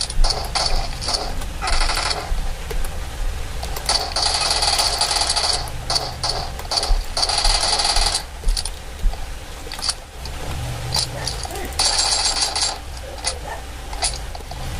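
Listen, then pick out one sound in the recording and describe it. Gunfire from a video game rattles in bursts through a small speaker.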